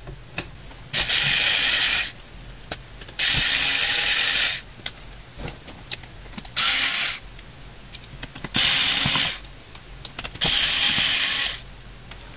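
An electric screwdriver whirs in short bursts.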